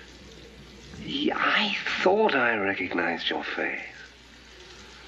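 A middle-aged man speaks urgently up close.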